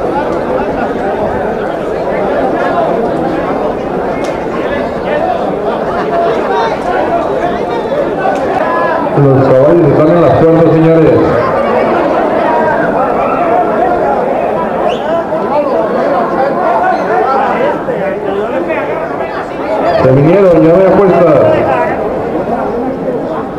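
A crowd of men chatters and calls out outdoors.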